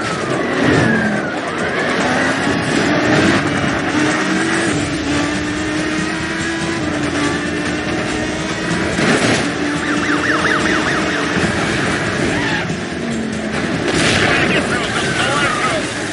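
A car engine roars and revs at high speed.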